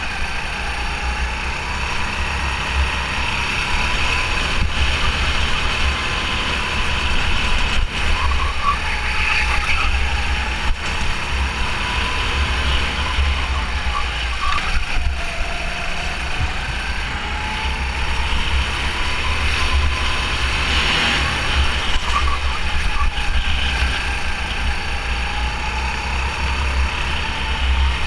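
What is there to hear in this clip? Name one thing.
A go-kart engine buzzes close by, rising and falling in pitch through the turns.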